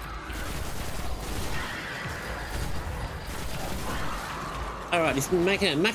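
Gunfire and energy blasts crackle from a video game.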